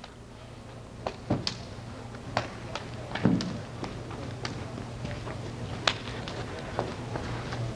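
Wooden sticks clack together sharply.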